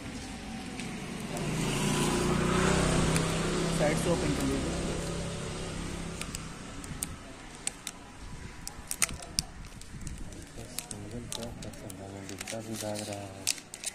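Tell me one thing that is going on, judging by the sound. Thin plastic film crackles and crinkles as it is handled.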